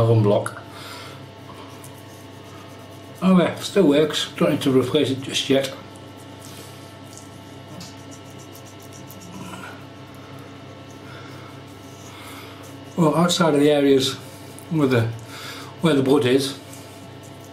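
An electric shaver buzzes steadily.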